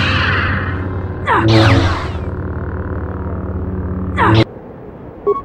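A lightsaber hums with a low, steady buzz.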